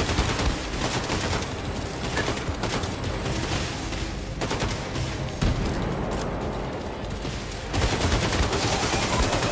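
Explosions from a video game boom.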